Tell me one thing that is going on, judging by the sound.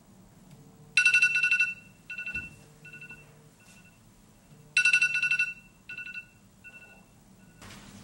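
A phone alarm beeps in short repeated bursts.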